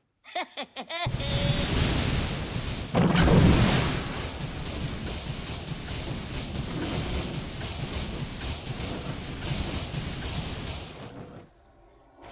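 Magic spells whoosh and crackle during a fast fight.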